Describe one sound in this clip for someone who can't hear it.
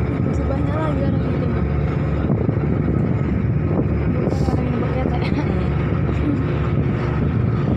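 A boat engine rumbles steadily.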